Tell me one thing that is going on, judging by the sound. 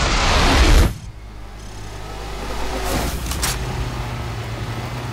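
A vehicle engine idles with a low hum.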